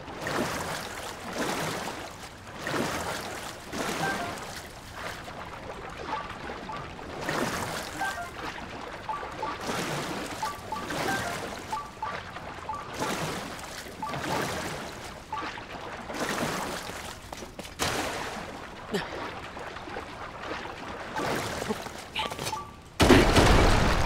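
Water splashes in rhythmic swooshes as a raft is paddled along.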